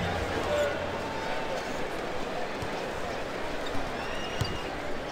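A crowd murmurs and cheers steadily in a large echoing arena.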